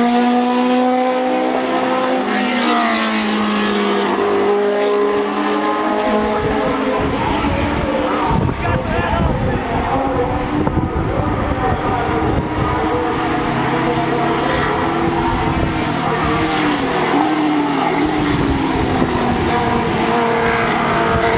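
A racing car engine roars loudly, its pitch rising and falling as it speeds by and shifts gears.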